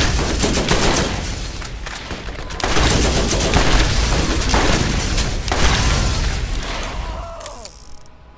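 A gun fires in rapid bursts of loud shots.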